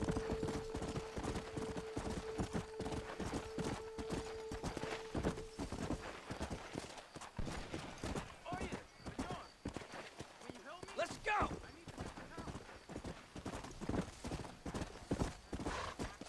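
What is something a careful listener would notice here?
A horse's hooves thud steadily as it trots.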